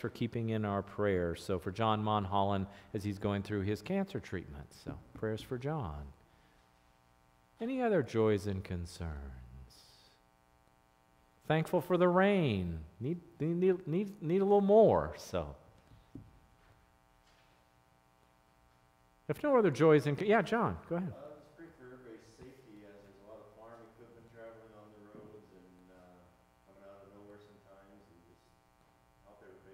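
A man speaks calmly into a microphone, with pauses, in a room with some echo.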